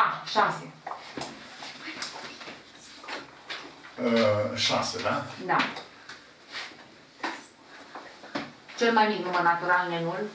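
An elderly man speaks calmly, explaining.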